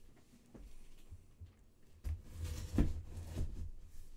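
A blade slices through packing tape on a box.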